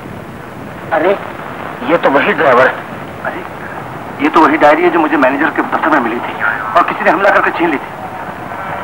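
A man speaks with feeling, heard through an old, hissy recording.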